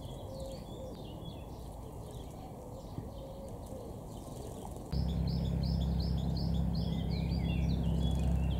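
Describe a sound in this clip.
Small birds chirp and twitter with quick high calls.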